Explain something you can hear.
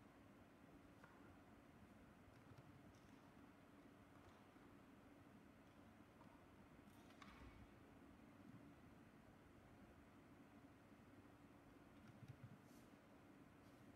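Small objects knock and clink softly on a table in an echoing hall.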